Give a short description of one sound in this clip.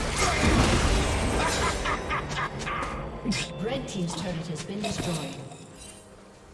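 Magic blasts and hits crackle and clash in a video game battle.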